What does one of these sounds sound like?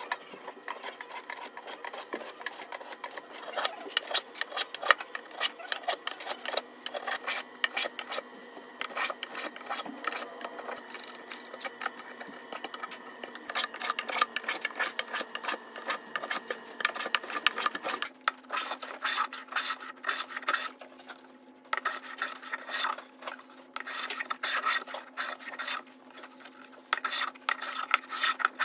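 A block plane shaves strokes across hardwood.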